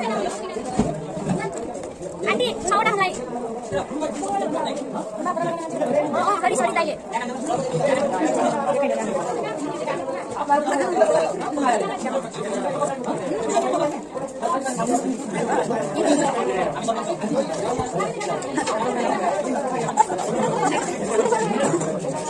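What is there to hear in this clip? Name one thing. Young women talk casually close by.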